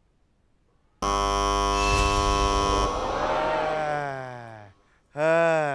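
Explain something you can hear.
A loud buzzer blares and fades.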